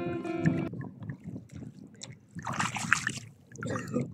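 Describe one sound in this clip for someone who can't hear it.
A hand splashes in shallow water.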